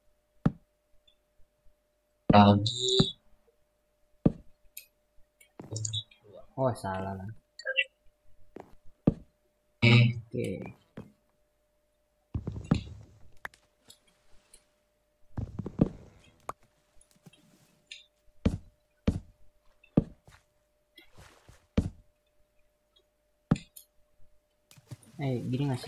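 Wooden blocks knock softly as they are set down one after another.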